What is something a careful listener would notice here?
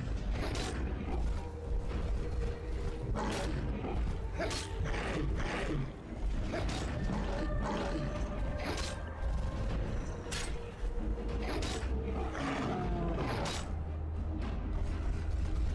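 A heavy weapon swings and strikes with sharp thuds.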